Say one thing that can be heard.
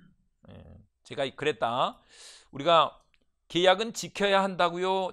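A man lectures with animation through a microphone.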